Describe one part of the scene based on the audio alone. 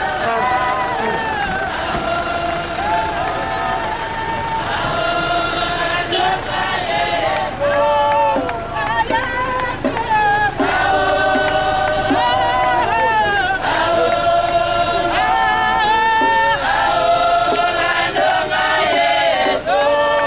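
A crowd of men and women sings a hymn together outdoors.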